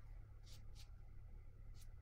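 A brush dabs and strokes softly on paper.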